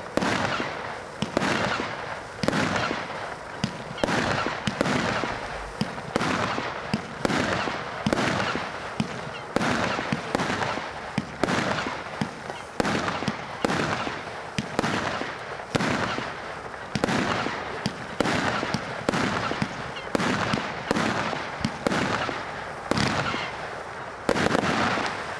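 Fireworks crackle and fizz after each burst.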